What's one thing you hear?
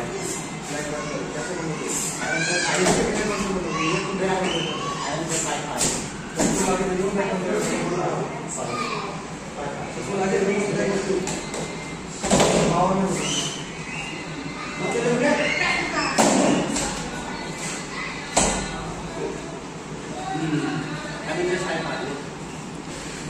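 Children talk nearby in an echoing room.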